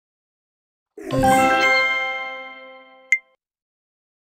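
A cheerful jingle rings out and fades.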